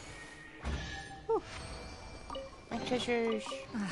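A treasure chest opens with a bright magical chime.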